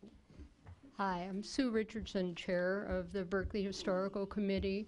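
A middle-aged woman speaks calmly into a microphone, close and clear.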